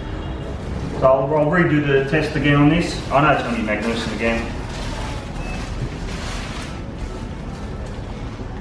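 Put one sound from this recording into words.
Paper wrapping rustles and crinkles.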